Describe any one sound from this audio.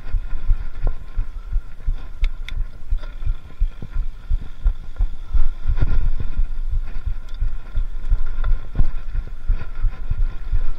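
Bicycle tyres rattle and crunch over a bumpy dirt trail.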